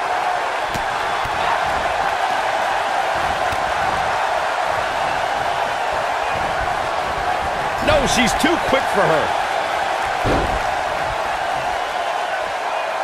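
A large crowd murmurs and cheers steadily in an arena.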